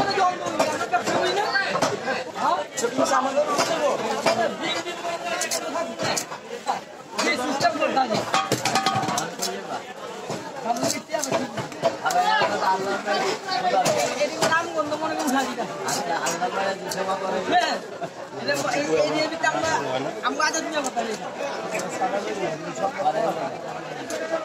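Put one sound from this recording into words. Fish are sliced and scraped against a fixed curved blade with wet, crunching cuts.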